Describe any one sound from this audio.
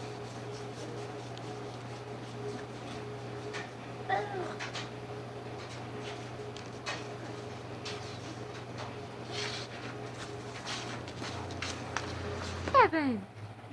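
A baby scratches and scrapes at loose dirt on the floor.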